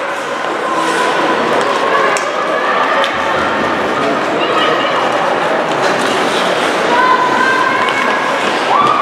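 Skates scrape and hiss across the ice in an echoing rink.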